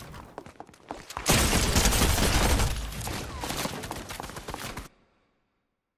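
Gunshots crack in quick bursts in a video game.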